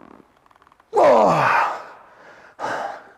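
A man groans with strain.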